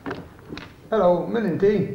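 An elderly man speaks into a telephone.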